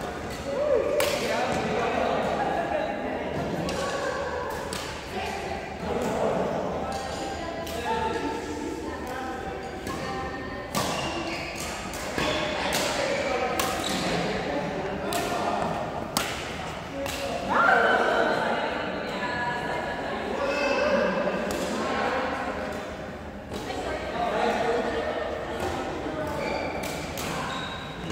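Badminton rackets strike a shuttlecock with sharp, quick pops in a large echoing hall.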